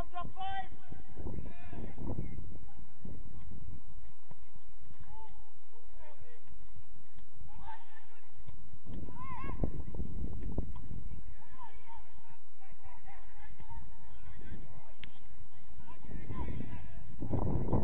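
Young players shout to each other across an open pitch outdoors.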